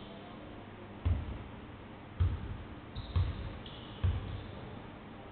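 A basketball bounces a few times on a wooden floor in a large echoing hall.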